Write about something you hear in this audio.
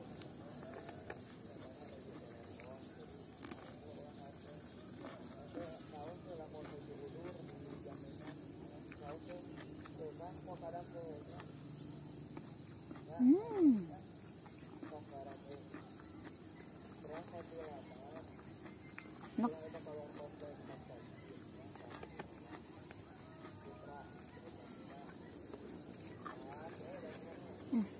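A young woman chews food noisily close to a microphone.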